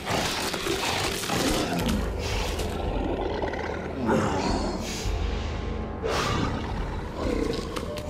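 A beast snarls and growls close by.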